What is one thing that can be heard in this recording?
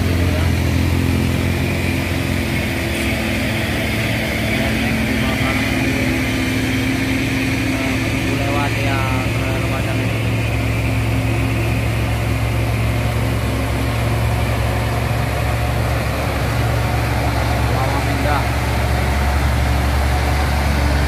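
Tyres roll on a paved road.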